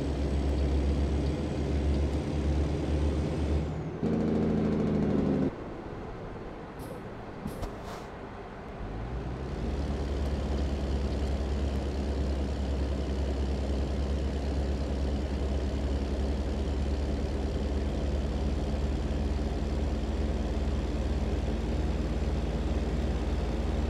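A heavy truck engine drones steadily, dropping briefly and then rising again.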